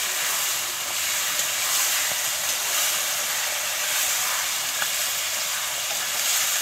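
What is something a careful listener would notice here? Food sizzles and bubbles steadily in a hot pan.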